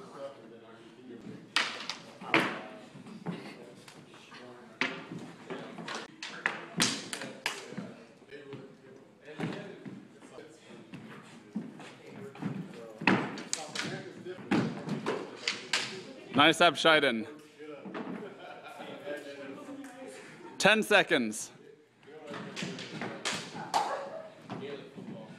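Feet shuffle and stamp on a hard floor.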